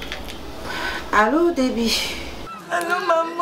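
A middle-aged woman speaks into a phone close by.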